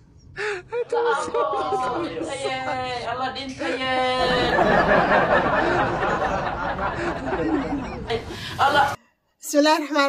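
A woman shouts angrily nearby.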